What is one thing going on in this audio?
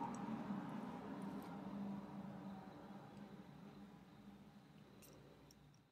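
Small dials on a combination lock click softly as they turn.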